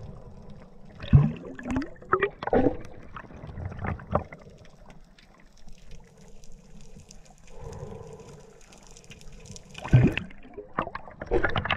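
Bubbles from a diver's exhaled breath gurgle and rush loudly underwater.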